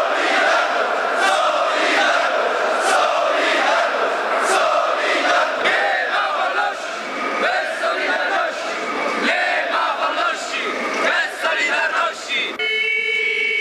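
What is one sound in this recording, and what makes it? A large crowd of men chants and cheers loudly outdoors.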